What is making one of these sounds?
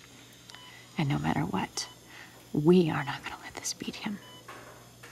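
A woman speaks quietly and tensely nearby.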